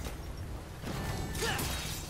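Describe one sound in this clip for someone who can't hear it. Blades slash and clash in a fight.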